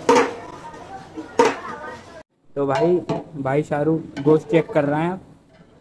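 A wooden paddle stirs a thick liquid in a metal pot.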